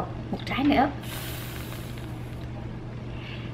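Whipped cream hisses from a spray can.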